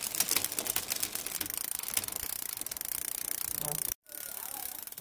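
A bicycle freewheel ticks rapidly as the rear wheel spins.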